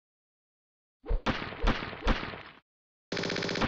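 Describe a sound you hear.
Three game stars land with loud thuds, one after another.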